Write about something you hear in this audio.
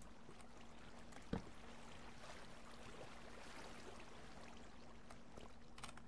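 Water flows and splashes nearby.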